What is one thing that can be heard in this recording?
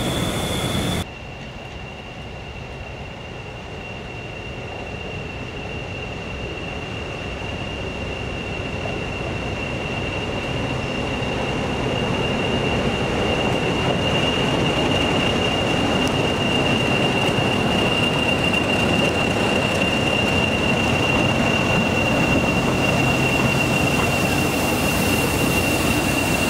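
A diesel locomotive engine drones and grows louder as it approaches and passes.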